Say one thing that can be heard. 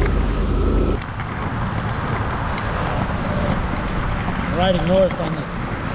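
Wind rushes past as the motorcycle speeds along an open road.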